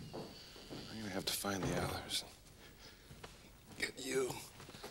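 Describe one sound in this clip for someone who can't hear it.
A man calls out breathlessly.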